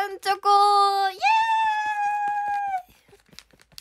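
A young woman sings out in a high, bright voice close by.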